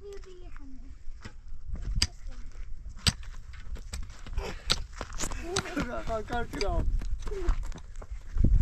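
A shovel scrapes and thuds into dry, stony soil.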